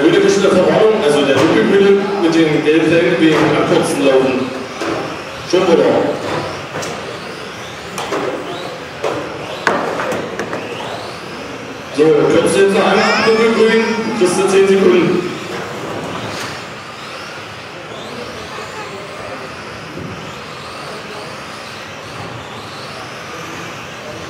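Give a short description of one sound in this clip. Small electric model cars whine and buzz as they race around in a large echoing hall.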